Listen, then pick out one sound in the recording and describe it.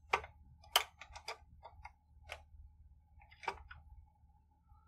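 Metal parts of a hand press clack and click as a lever is worked.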